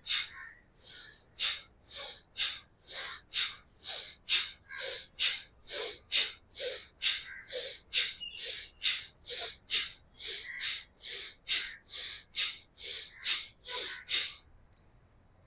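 A man breathes out sharply through his nose in a quick, steady rhythm.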